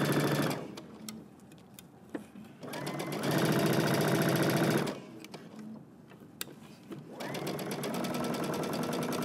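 A sewing machine whirs in short bursts, stitching fabric.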